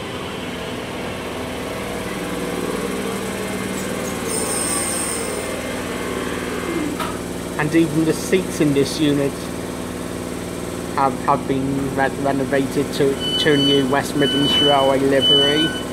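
A train's engine hums steadily beside a platform.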